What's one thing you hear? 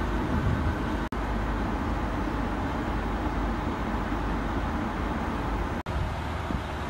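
A train rumbles steadily, heard from inside a carriage.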